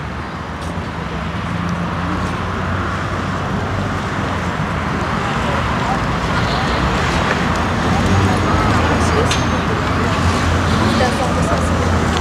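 People chatter quietly in the distance outdoors.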